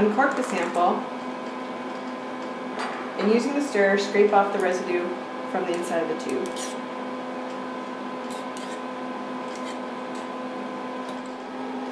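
Glass tubes clink softly.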